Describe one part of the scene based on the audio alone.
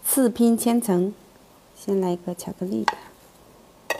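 A young woman speaks softly and brightly, close to a microphone.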